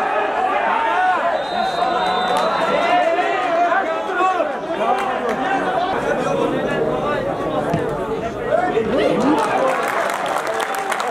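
A crowd of spectators chatters and calls out across an open stadium.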